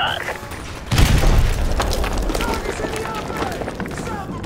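A large explosion booms close by.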